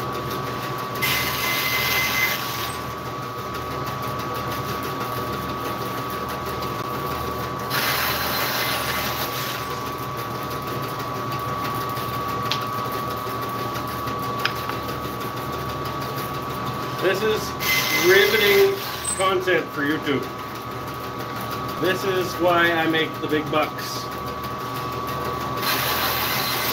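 A band saw blade cuts through wood in short bursts.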